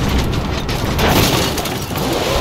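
A car smashes through wooden crates with a loud crash.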